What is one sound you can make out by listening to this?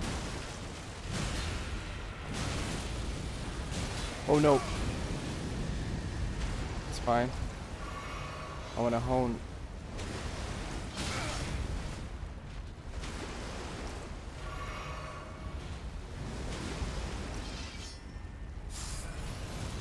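Sword blades swing and clash in quick bursts.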